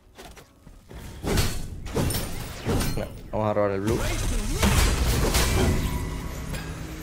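Video game blasts and clashing blows ring out.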